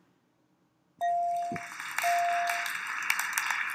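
A bright electronic tone chimes twice.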